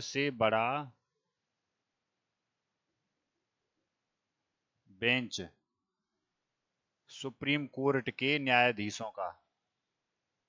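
A man speaks calmly into a headset microphone, in short bursts.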